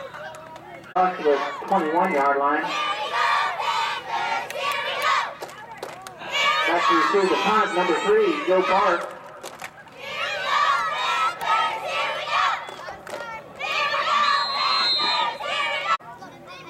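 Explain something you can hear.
A crowd of men and women shouts and cheers loudly outdoors.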